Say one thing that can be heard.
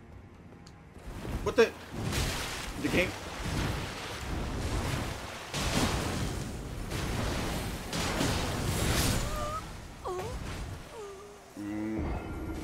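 Heavy weapons clash and strike in a loud fight.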